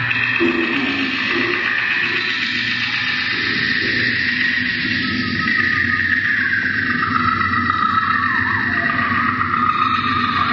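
Electronic synthesizer music plays with steady droning tones.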